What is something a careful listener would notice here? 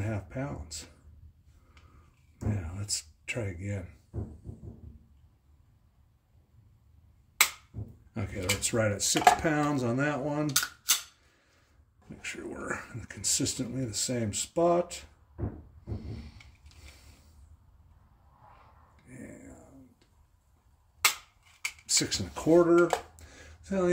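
A metal tool clicks and scrapes against a pistol frame.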